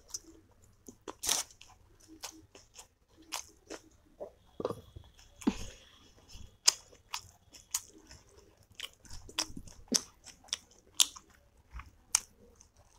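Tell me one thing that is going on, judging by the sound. A woman chews food with wet, smacking mouth sounds very close to a microphone.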